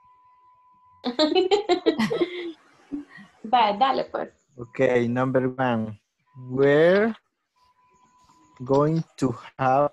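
A woman laughs over an online call.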